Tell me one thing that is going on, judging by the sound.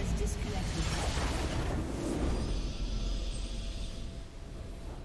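A huge magical blast booms and crackles.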